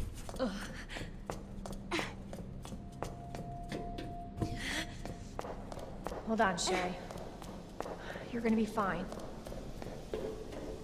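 Footsteps fall steadily on a hard floor.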